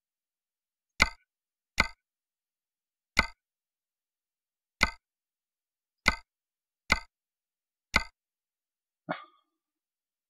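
Short sharp menu clicks sound now and then.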